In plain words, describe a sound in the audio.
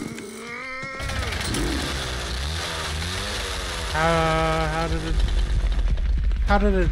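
A chainsaw rumbles and revs.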